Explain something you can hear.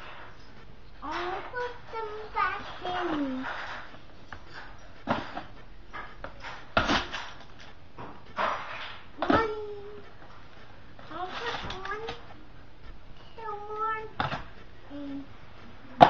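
A young child babbles and talks in high, sing-song bursts close by.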